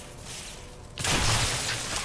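Gunshots boom loudly.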